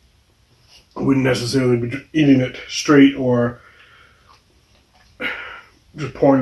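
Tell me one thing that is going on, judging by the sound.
A middle-aged man talks calmly and clearly into a nearby microphone.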